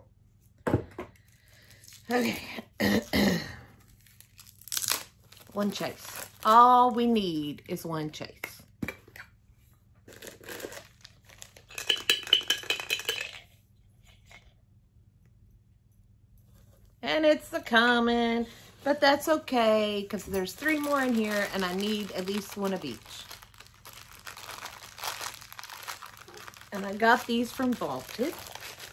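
Cardboard and packaging rustle and crinkle.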